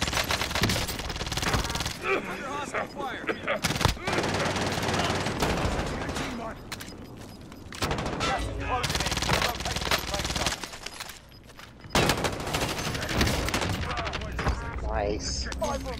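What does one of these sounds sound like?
Rapid gunshots fire in sharp bursts.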